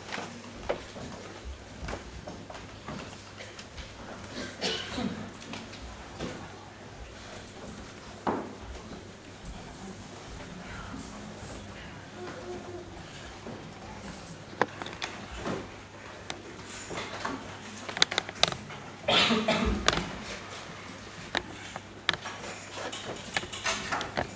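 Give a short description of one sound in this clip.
Chairs and music stands knock and scrape in a large echoing hall.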